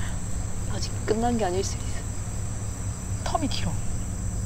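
A young woman speaks with animation nearby.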